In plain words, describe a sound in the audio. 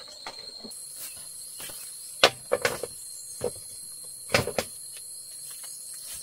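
A metal wok clanks against a bamboo wall.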